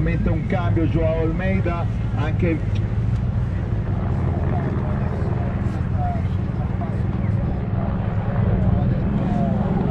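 Car engines rumble and idle steadily below.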